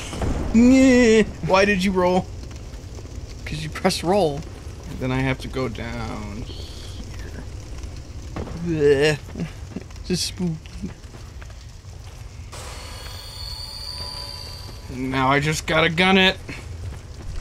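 A man talks casually through a microphone.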